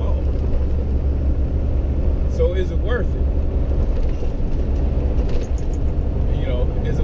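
A vehicle engine hums steadily with road noise while driving.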